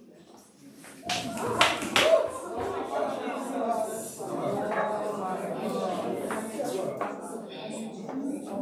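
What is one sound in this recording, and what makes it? A large crowd of people sings together.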